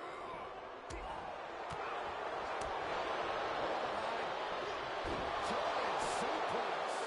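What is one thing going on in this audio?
A crowd roars and cheers steadily in a large arena.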